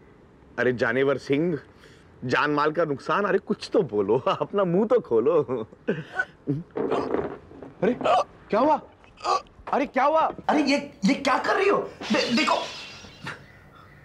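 A man speaks emotionally, close by.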